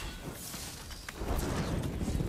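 A flaming blade whooshes through the air.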